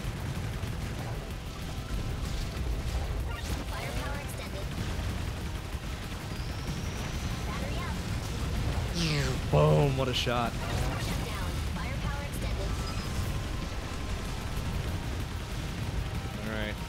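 Game explosions and laser blasts crackle rapidly.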